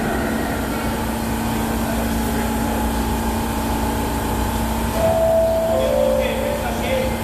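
A subway train hums steadily as it stands in an echoing underground station.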